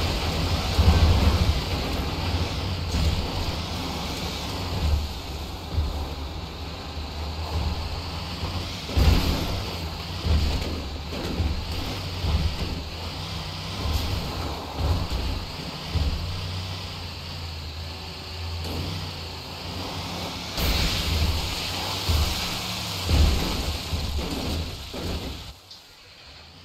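A heavy truck engine rumbles as it drives over rough ground.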